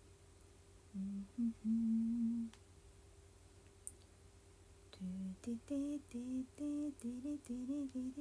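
A young woman hums a tune softly close by.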